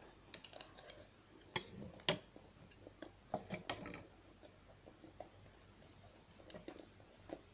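A young woman chews and slurps noodles close by.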